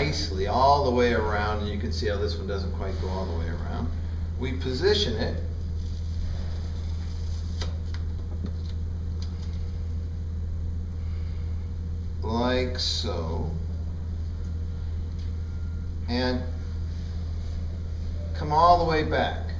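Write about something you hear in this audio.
A middle-aged man speaks calmly nearby, in short bursts with pauses.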